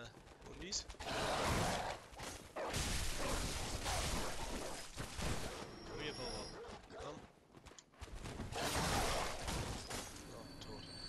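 A blade slashes through flesh with heavy, wet strikes.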